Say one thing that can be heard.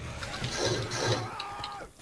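A creature snarls and growls up close.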